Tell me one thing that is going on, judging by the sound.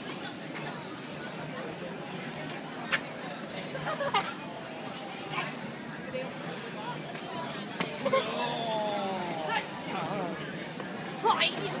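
A man talks and laughs nearby.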